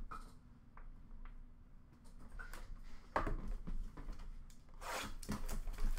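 Hands rummage through a bin of cards and plastic, rustling and crinkling.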